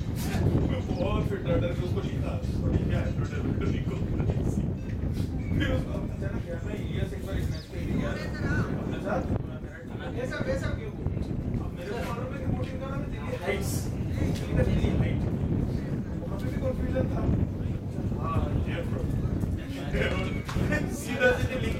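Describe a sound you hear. Men talk and call out to each other in the distance outdoors.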